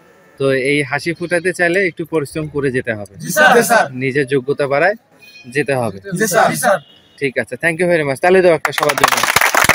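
A group of young men speak in unison, close by and loudly.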